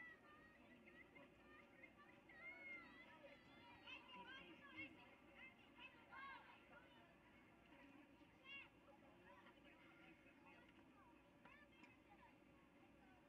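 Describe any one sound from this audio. A crowd of spectators chatters and calls out outdoors at a distance.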